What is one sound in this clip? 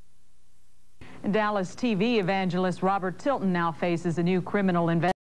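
A woman speaks clearly and evenly, as if reading news, heard through a broadcast.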